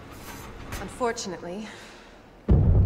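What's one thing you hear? A woman speaks calmly from nearby.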